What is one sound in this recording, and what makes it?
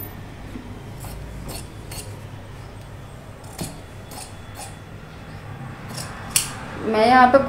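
Scissors snip through fabric in short crisp cuts.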